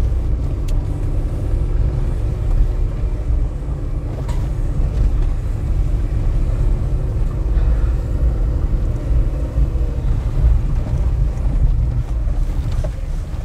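Tyres crunch over a rough dirt track.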